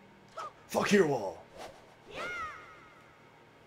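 A sword swishes quickly through the air.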